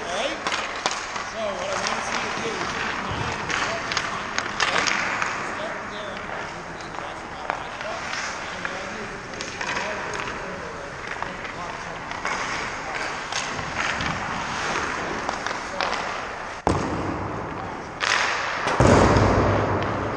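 Skate blades scrape and hiss on ice in a large echoing rink.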